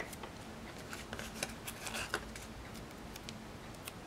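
A sheet of paper rustles softly close by.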